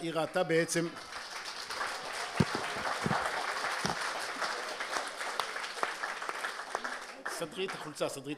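A crowd applauds with steady clapping.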